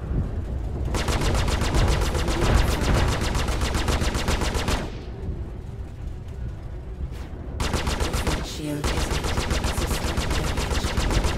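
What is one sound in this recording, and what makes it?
A spacecraft engine rumbles low and steady.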